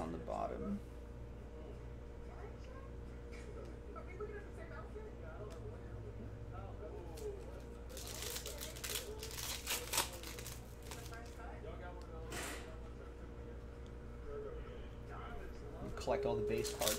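Trading cards slide and flick against each other.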